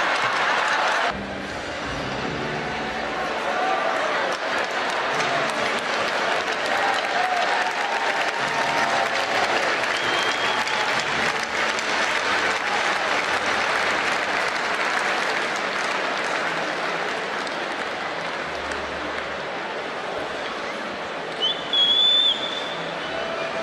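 A large crowd cheers and applauds in a big echoing arena.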